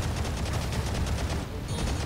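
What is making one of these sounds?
Jet thrusters roar on a robot in a video game.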